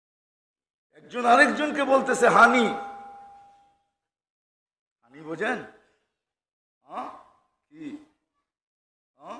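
An elderly man speaks with animation into a microphone, heard through a loudspeaker with echo.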